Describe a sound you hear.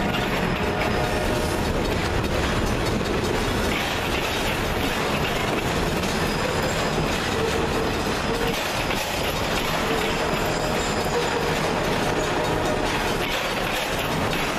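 A freight train rumbles past close by, its wheels clattering over the rail joints.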